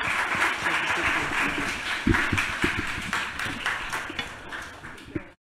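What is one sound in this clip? An audience applauds and slowly dies down.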